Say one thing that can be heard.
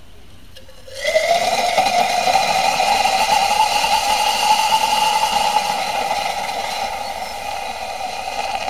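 A chemical mixture burns with a loud, steady roaring hiss.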